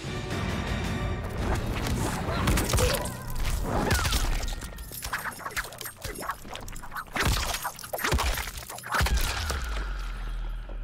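Punches, blows and magic effects crash loudly in a fighting game.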